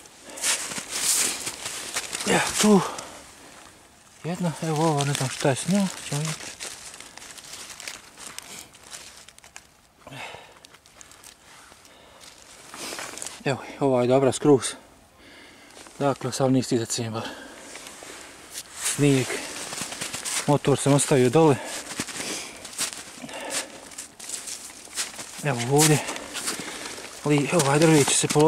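Dry leaves rustle and crackle under a hand.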